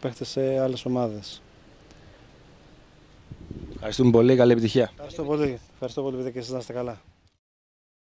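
A middle-aged man speaks calmly into microphones close by, outdoors.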